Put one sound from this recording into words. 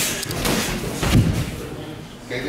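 A body thumps heavily onto a padded floor.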